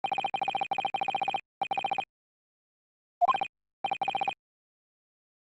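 Rapid high electronic blips tick in quick bursts as dialogue text types out.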